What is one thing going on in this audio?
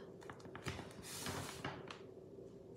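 A sheet of plastic rustles softly as it is set down on a table.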